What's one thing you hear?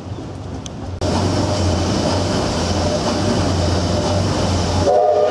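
A steam engine runs with a loud, steady clatter and hiss.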